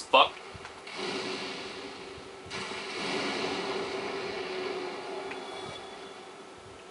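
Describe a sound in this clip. A fireball whooshes and roars as it bursts into flame.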